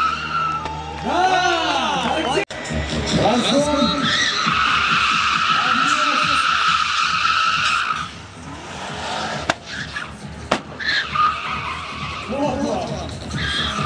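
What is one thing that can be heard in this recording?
A car engine revs hard, rising and falling.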